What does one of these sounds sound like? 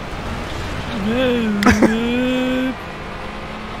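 Car engines rev and whine as a rival car draws close.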